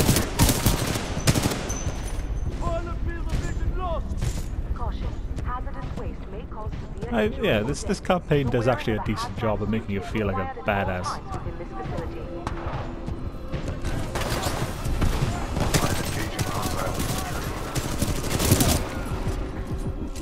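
Gunfire rattles in quick bursts.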